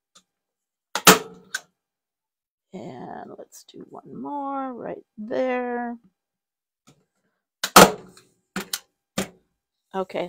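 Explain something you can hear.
A staple gun snaps sharply several times.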